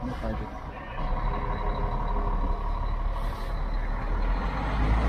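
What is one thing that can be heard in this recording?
A bus engine revs louder as the bus pulls forward.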